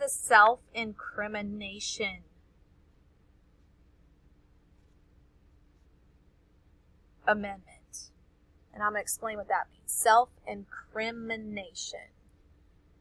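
A woman talks calmly through an online call microphone.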